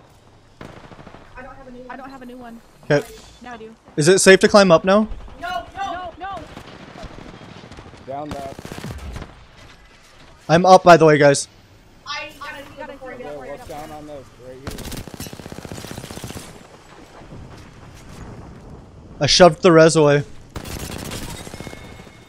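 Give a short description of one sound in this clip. Gunfire bursts rapidly.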